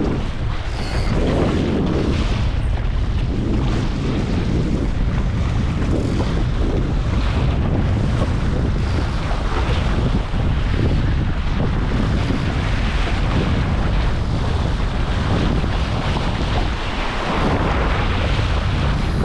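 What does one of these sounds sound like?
Strong wind roars steadily across the microphone outdoors.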